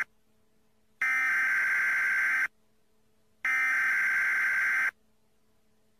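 A loudspeaker sounds a steady electronic tone twice.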